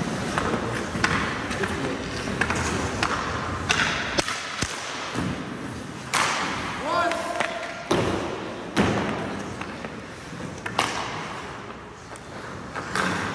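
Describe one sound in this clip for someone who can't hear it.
A hockey puck is shot and cracks off a stick.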